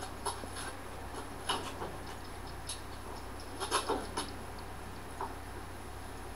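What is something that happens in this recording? A metal crank clicks and rattles as it is turned by hand.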